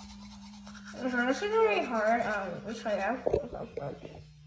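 A young girl hums in a wavering voice close by.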